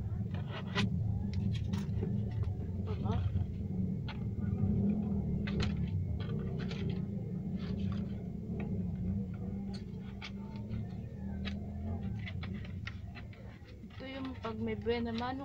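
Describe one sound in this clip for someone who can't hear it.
Coins rattle and clink as they are shaken out of a plastic piggy bank.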